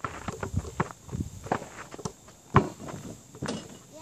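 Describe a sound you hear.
A basketball clangs off a backboard and rim.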